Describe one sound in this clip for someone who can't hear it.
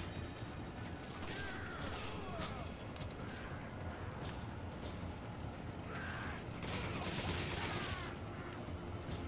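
Rifle shots crack in a video game.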